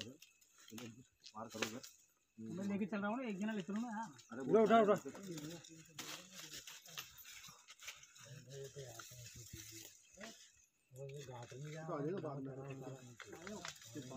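Branches and dry leaves rustle and snap as men push through them.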